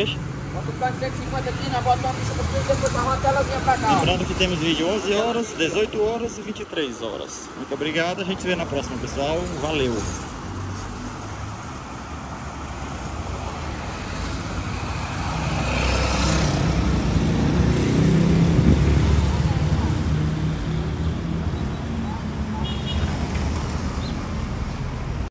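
Motorcycle engines buzz as they pass close by on a street.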